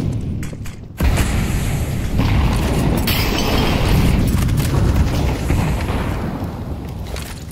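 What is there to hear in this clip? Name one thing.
Flames from a burning grenade roar loudly.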